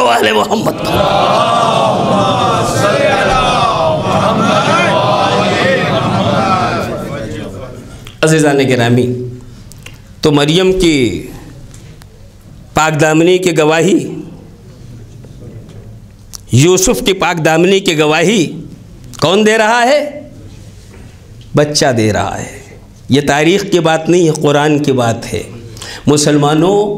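A man speaks with animation through a microphone in an echoing hall, pausing between phrases.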